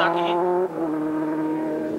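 A motorcycle engine roars past at high speed.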